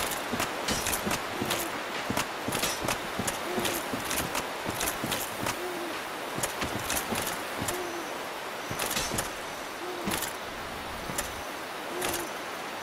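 Armored footsteps thud and clink rapidly on soft ground.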